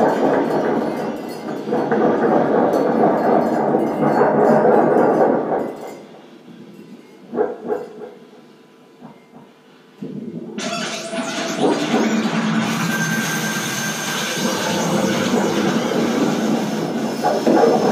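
Electronic tones swell and warble through an amplifier.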